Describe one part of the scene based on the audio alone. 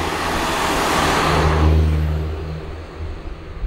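A car drives past close by and fades away.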